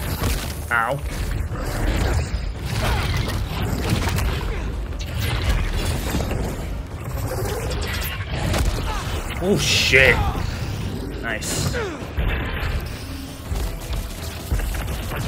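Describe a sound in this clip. Heavy blows thud and crash in a fight.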